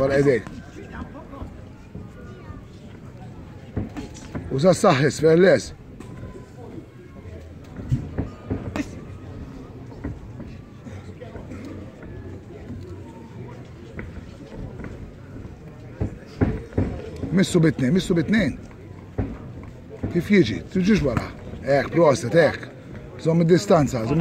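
Boxers' feet shuffle and thud on the ring canvas.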